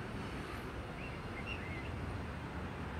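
A bird chirps softly a few times.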